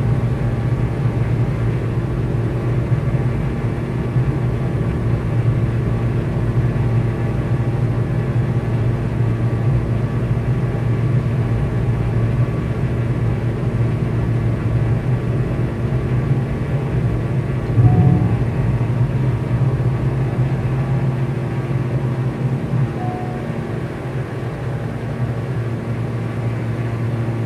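Jet engines roar steadily as an airliner takes off and climbs.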